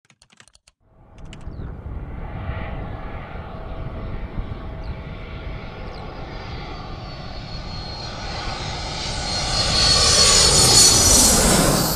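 A jet plane roars louder and louder as it approaches overhead.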